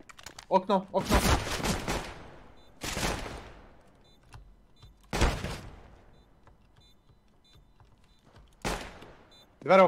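Pistol shots ring out one at a time.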